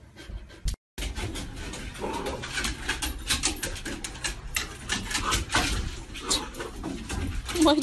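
Dog paws tap and scrape on a wooden deck.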